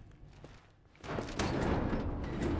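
A metal gate rattles.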